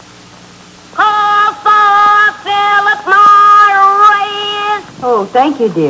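A young man calls out in a high, sung voice.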